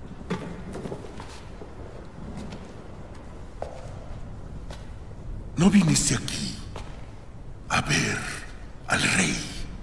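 An elderly man speaks loudly and angrily in an echoing hall.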